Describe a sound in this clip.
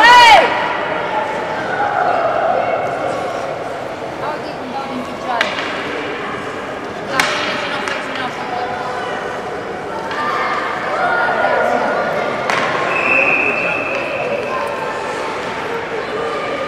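Skates scrape and glide across the ice.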